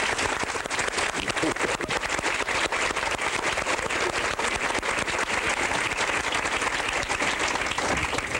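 A large audience applauds loudly in an echoing hall.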